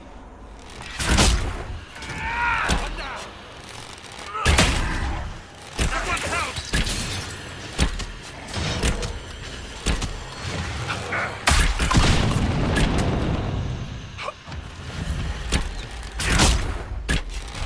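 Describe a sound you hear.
Magic blasts burst and crackle loudly.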